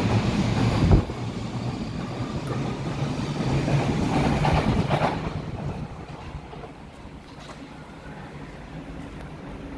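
A distant train rumbles along the tracks.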